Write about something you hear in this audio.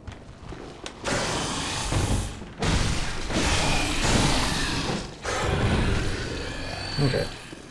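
A saw blade slashes and grinds into flesh.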